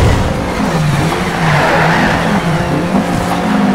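Tyres screech as a car slides through a corner.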